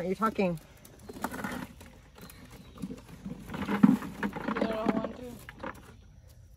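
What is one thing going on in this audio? Vegetables tumble out of a wicker basket into a bucket with a rustling clatter.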